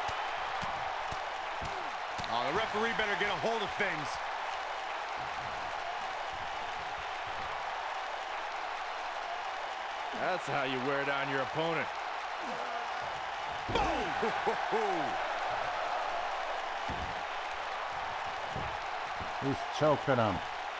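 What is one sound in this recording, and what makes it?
A large crowd cheers and murmurs steadily in a big arena.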